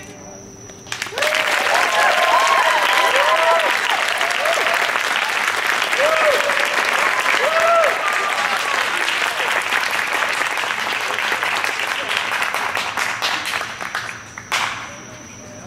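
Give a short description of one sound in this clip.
A crowd claps and cheers loudly outdoors.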